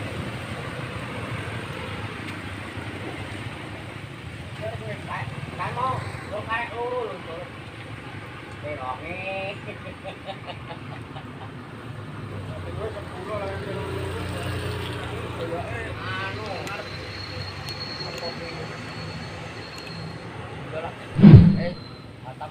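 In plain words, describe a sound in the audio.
Motorbike engines hum as they ride past on a road.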